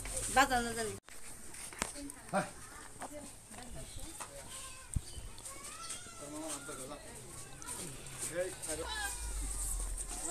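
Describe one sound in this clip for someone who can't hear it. Several people murmur quietly outdoors.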